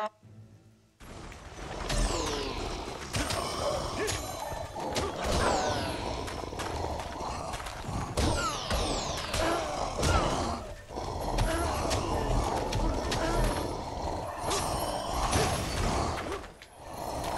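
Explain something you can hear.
Monsters snarl and growl.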